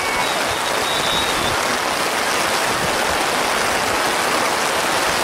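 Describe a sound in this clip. Wind rushes steadily across the microphone outdoors.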